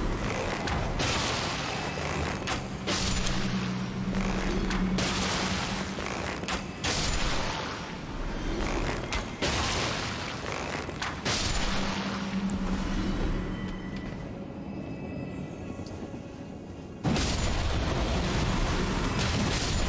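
Heavy weapon blows land with sudden metallic crashes.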